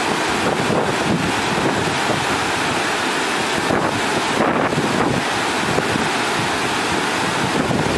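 A river rushes nearby.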